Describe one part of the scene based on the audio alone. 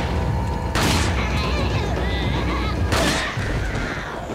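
A handgun fires two loud shots that ring out.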